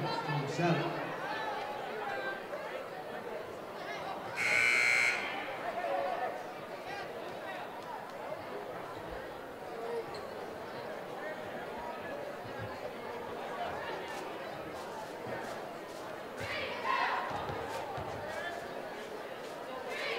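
A large crowd murmurs and chatters in an echoing gym.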